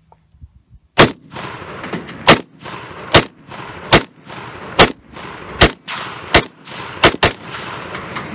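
A rifle fires a quick series of loud shots outdoors, each echoing away.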